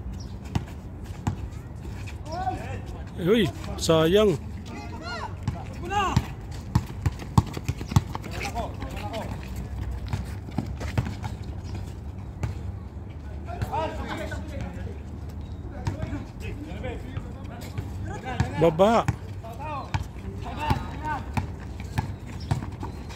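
A basketball bounces on an outdoor court.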